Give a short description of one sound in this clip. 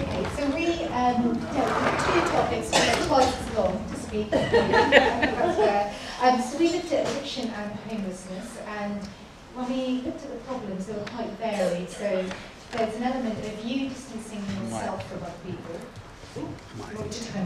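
A woman speaks to a group through a microphone in an echoing hall.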